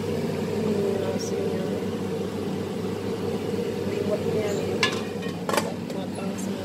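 A metal pot lid clanks as it is lifted and put back on a pot.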